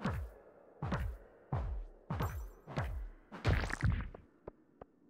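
Stones crack and thud as they are broken with a pickaxe.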